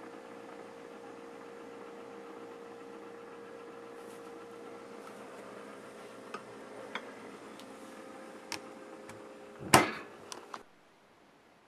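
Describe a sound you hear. A refrigerator hums steadily.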